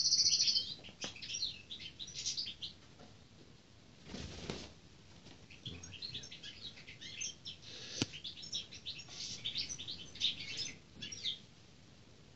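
A hawk makes soft, high chirps.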